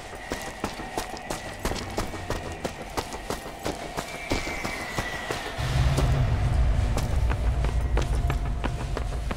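Footsteps run quickly over rubble and pavement.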